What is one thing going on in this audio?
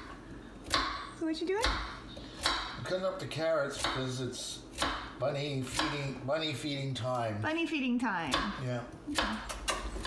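A knife chops carrots on a wooden board.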